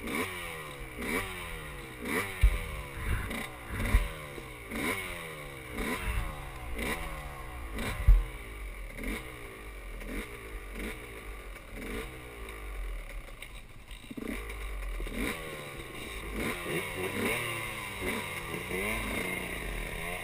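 A dirt bike engine revs up and down close by, over and over.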